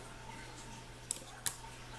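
A metal scope mount clicks against a rifle rail.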